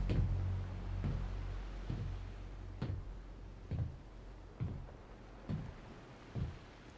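Footsteps climb stairs at a steady pace, each step a dull thump.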